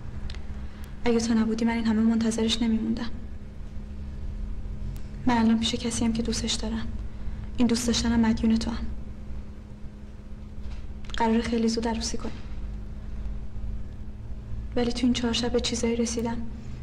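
A young woman speaks quietly and earnestly, in short phrases with pauses.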